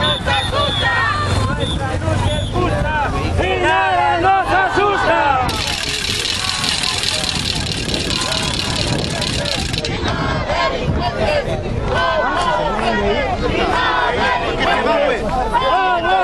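A crowd of men and women chants and shouts loudly outdoors.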